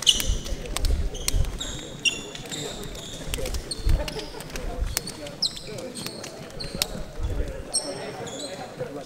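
Footsteps patter on a wooden floor.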